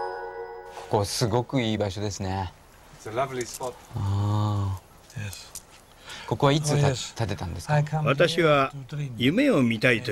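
Two men talk calmly nearby, taking turns.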